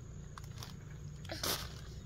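A baby babbles nearby.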